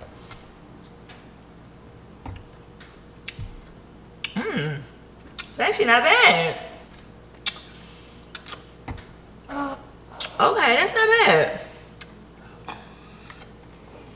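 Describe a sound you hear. A woman sips through a straw.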